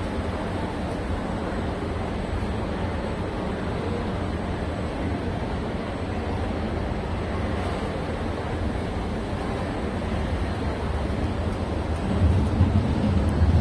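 A train rumbles along an elevated track, growing louder as it draws near.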